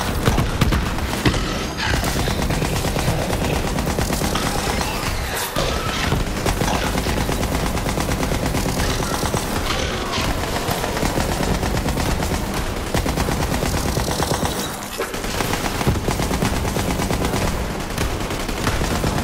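Creatures screech and snarl.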